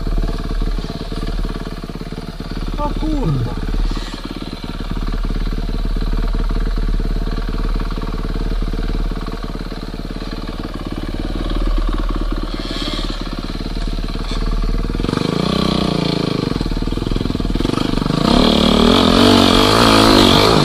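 Another dirt bike engine revs nearby.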